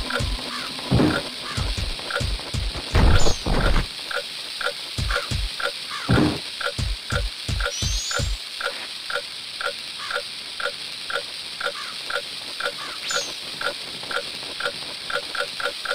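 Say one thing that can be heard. Footsteps patter quickly and evenly on stone.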